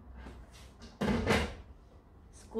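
Plastic dishes clatter.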